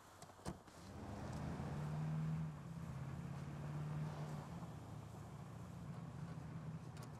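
A vehicle engine rumbles and revs as it drives.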